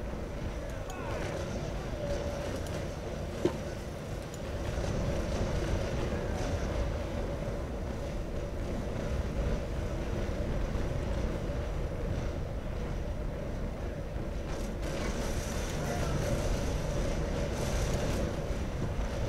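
Open sea waves wash and churn around a ship's hull.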